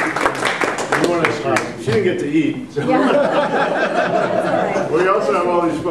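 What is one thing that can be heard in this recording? A man speaks calmly to a small audience.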